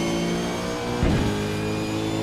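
A racing car gearbox shifts with a sharp thump.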